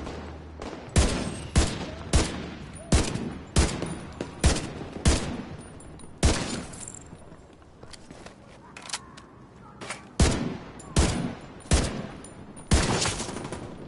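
Rifle shots crack out in quick bursts, ringing off nearby buildings.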